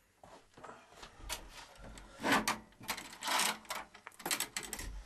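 A metal door chain rattles and clicks.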